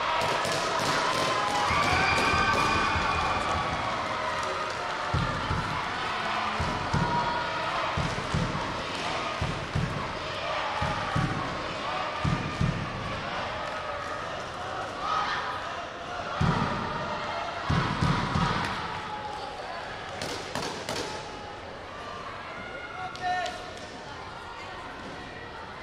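Young people shout and chatter across a large echoing hall.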